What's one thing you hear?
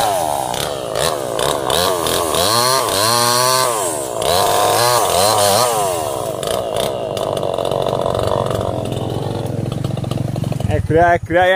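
A chainsaw revs and cuts through wood up close.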